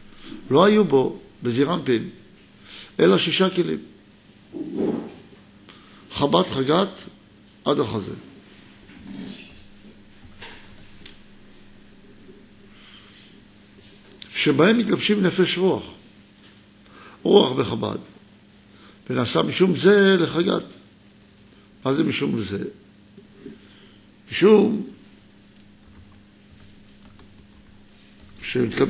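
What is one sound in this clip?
A middle-aged man speaks calmly into a close microphone, pausing often.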